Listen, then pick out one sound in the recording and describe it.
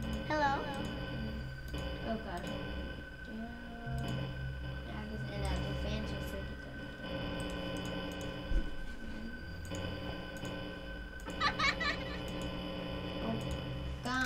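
Electronic static hisses and crackles.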